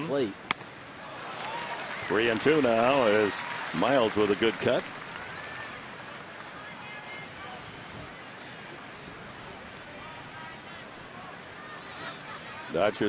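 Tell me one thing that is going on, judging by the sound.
A large crowd murmurs steadily outdoors.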